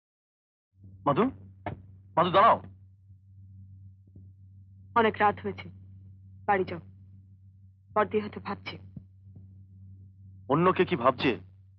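A young woman speaks tensely nearby.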